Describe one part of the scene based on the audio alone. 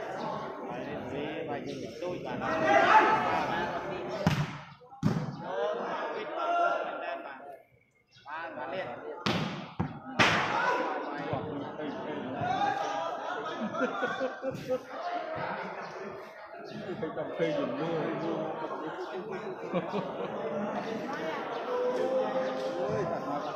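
A crowd of people chatters and calls out in a large echoing hall.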